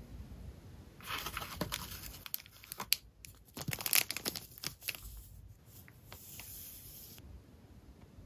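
A plastic sleeve crinkles as a pen is pulled out of it.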